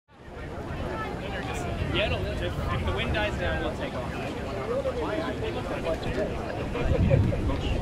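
A crowd of people chatter nearby outdoors.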